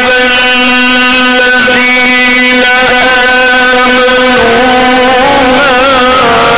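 A man chants in a long, drawn-out melodic voice through a microphone and loudspeakers.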